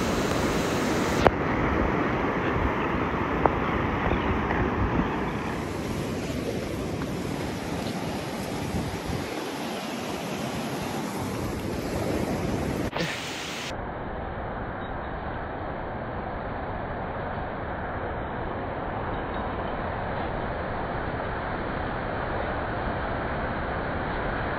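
Strong wind blows across the microphone outdoors.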